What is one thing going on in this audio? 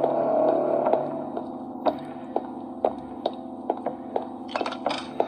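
Footsteps thud on a hard floor at a steady walking pace.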